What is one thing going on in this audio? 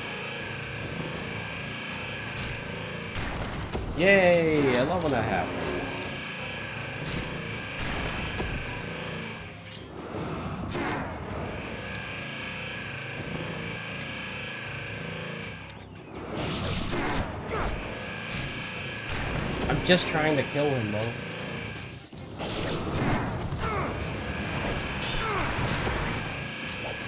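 Magical energy blasts boom and crackle.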